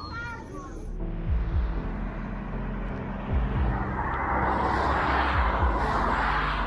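Cars rush past on a highway.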